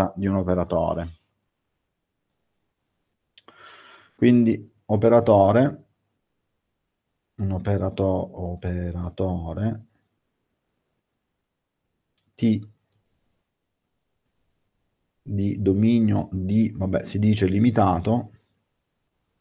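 A man speaks calmly in bursts through an online call microphone.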